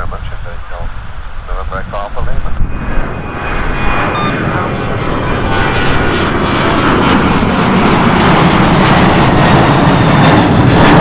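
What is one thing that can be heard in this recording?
A jet airliner roars overhead, growing steadily louder as it climbs.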